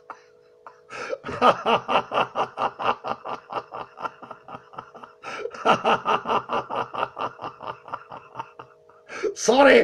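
An elderly man laughs heartily in rapid bursts over an online call.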